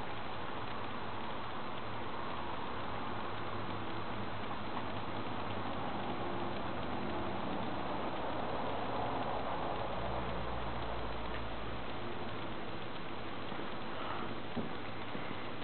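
Rushing, roaring video game sound effects play through a television speaker.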